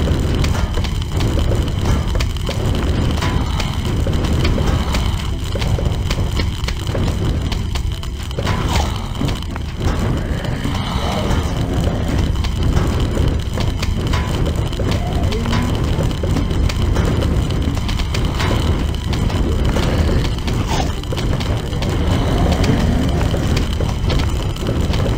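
Game plants fire peas with rapid popping sounds.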